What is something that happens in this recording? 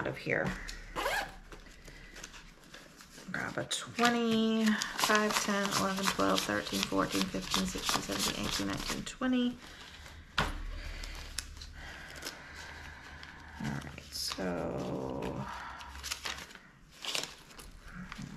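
Paper bills rustle and flick as they are counted by hand.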